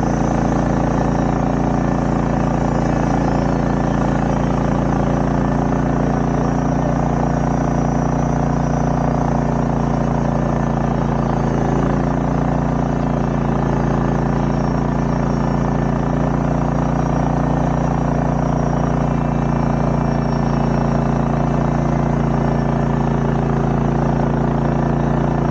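A diesel engine idles close by with a steady low rumble.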